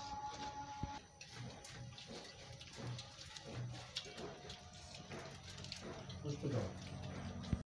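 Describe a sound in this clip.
Hands scoop rice from metal plates with small clinks.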